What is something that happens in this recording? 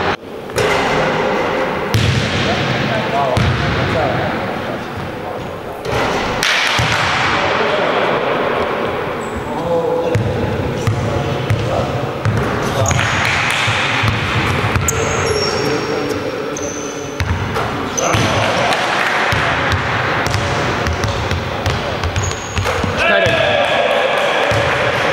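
Basketballs bounce and thud on a wooden floor in a large echoing hall.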